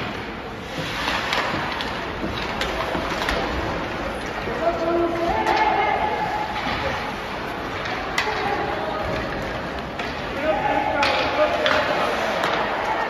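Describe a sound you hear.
Skates scrape and carve across the ice in an echoing arena.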